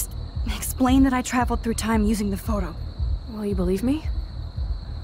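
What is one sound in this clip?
A young woman speaks softly and calmly up close.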